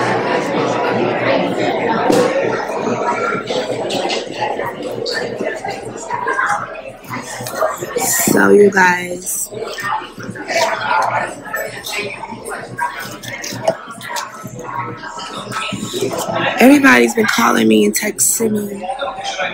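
A young woman talks with animation close to a phone's microphone.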